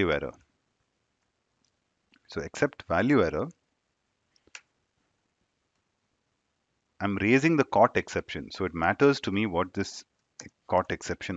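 A young man speaks calmly into a close headset microphone, in bursts with pauses.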